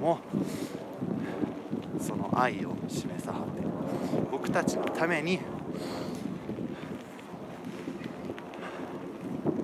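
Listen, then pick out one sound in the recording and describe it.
A young man talks with animation close to a microphone, outdoors.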